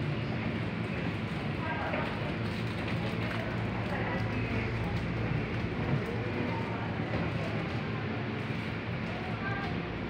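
A young woman speaks close to the microphone.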